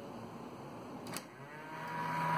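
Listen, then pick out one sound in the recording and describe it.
A cassette deck door clicks open.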